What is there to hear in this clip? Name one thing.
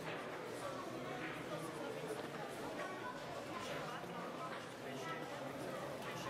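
A chess piece is set down on a board with a light tap.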